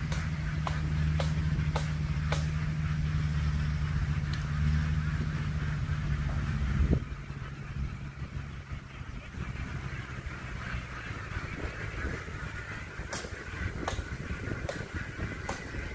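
Ducks quack on the riverbank.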